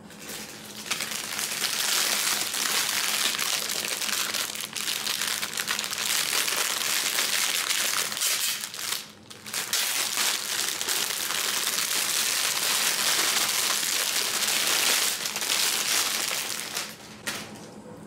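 Crinkly plastic wrapping rustles and crackles close up.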